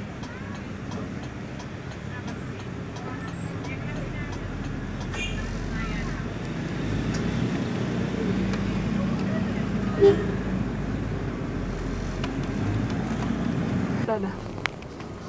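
A motorcycle engine rumbles close by.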